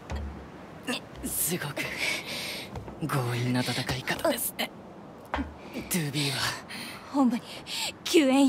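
A young man speaks teasingly, close by.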